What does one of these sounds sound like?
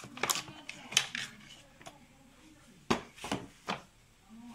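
A small battery knocks against hard plastic as it is lifted out.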